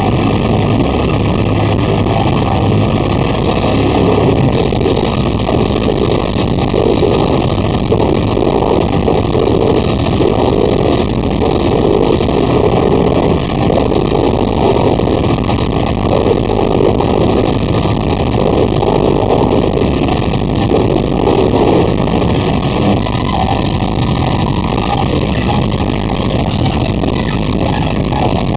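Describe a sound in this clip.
A heavy metal band plays loudly in a large echoing hall.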